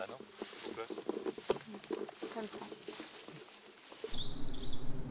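Footsteps crunch through dry grass and leaves.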